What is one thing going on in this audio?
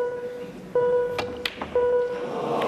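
Snooker balls click sharply together.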